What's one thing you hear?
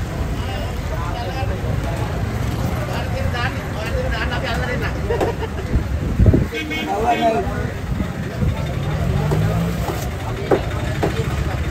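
A heavy knife chops through a fish with dull thuds.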